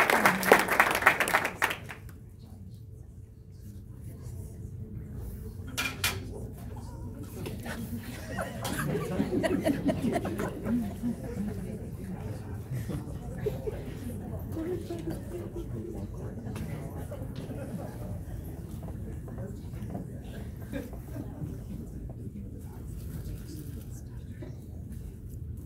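A crowd of adults chatters quietly nearby.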